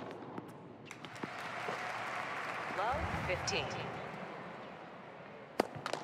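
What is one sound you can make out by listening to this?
A crowd cheers and applauds in a large arena.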